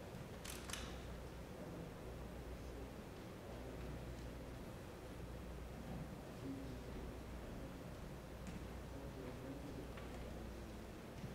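A man speaks quietly at a distance in a large echoing hall.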